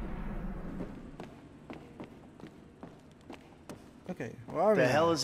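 Footsteps tap on hard steps.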